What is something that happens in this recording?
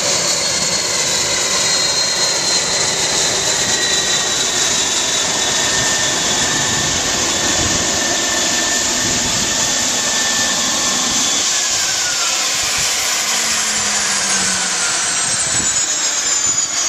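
A propeller plane's engine roars loudly up close, its propeller whirring.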